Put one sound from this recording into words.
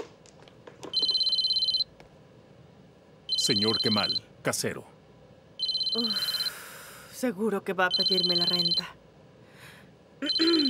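A phone rings in repeated bursts.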